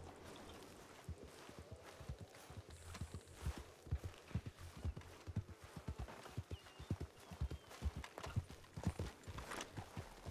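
Footsteps crunch steadily on a dirt road.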